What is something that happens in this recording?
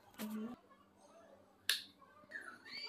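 A wall switch clicks.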